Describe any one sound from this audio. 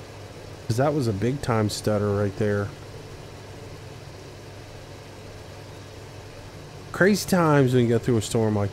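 A tractor engine idles steadily.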